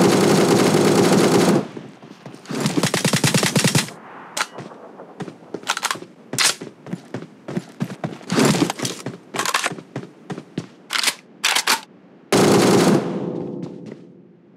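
Footsteps run quickly over hard ground.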